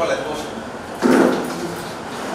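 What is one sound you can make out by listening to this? A plastic chair knocks down onto a hard floor.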